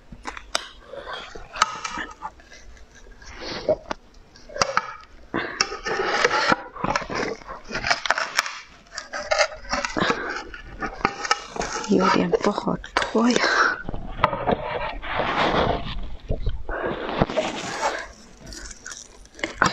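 Crunchy ice cracks and crumbles close up.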